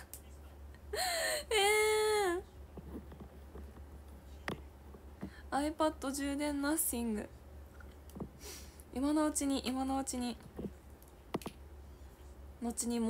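A young woman speaks close to a microphone in a bright, drawn-out voice.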